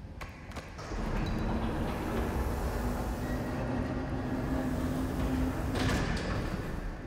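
A lift motor hums steadily as it rises, then stops.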